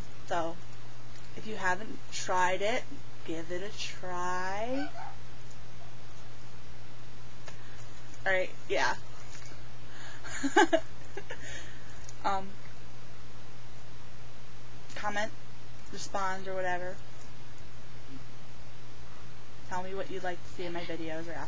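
A young woman talks with animation close to a microphone, in short bursts with pauses.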